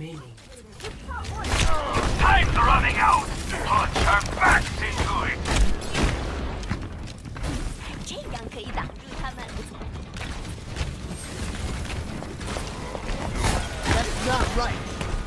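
A video game weapon fires bursts of blasts.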